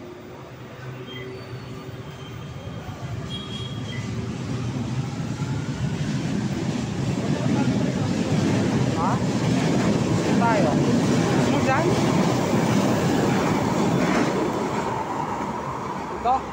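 A train rumbles past close by, growing louder and then fading.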